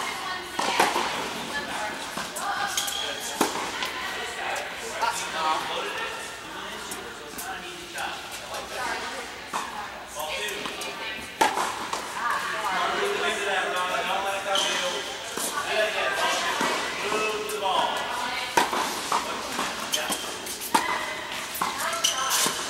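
Tennis rackets strike a ball in a large echoing hall.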